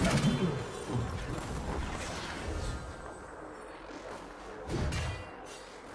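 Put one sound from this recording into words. Game spell and combat effects crackle and clash in quick bursts.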